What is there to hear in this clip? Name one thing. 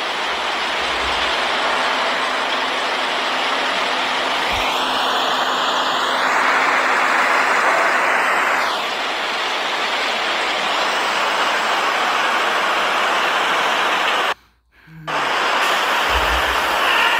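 Water splashes and washes steadily.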